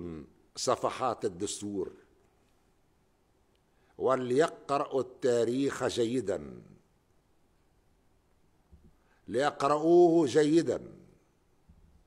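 An elderly man speaks slowly and formally into a microphone, with pauses between phrases.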